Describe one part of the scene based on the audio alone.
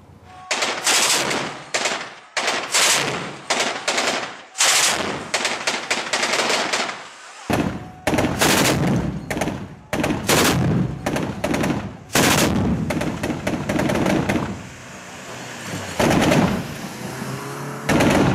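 A truck-mounted twin-barrel anti-aircraft cannon fires in bursts.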